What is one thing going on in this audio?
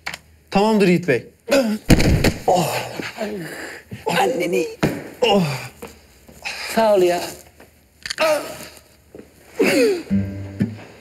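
A man shouts and grunts in a struggle.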